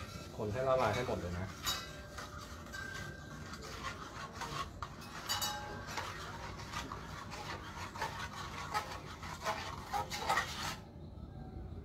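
Fingers splash and swish water in a metal bowl.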